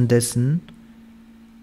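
A man speaks briefly and softly, close to a microphone.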